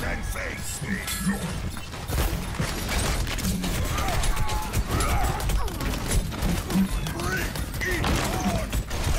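Bullets and blasts clang off a metal shield.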